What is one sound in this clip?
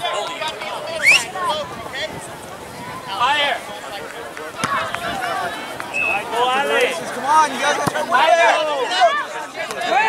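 Young players shout and call out to each other outdoors across an open field.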